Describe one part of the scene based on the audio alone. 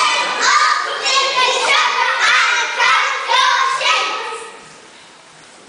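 A group of children sing together in a large hall, ending after a few seconds.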